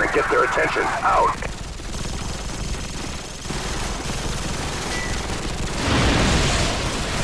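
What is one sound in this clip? Distant gunfire and explosions rumble steadily.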